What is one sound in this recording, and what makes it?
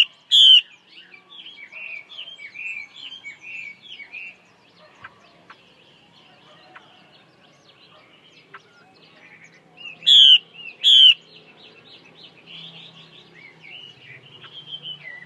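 A caged songbird sings close by in loud, rapid, chirping phrases.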